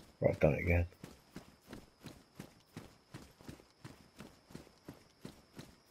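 Footsteps thud at a steady walking pace on hard ground.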